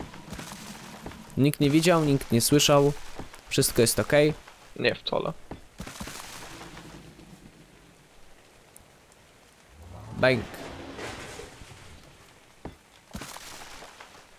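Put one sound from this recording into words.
Wooden walls crunch and break apart.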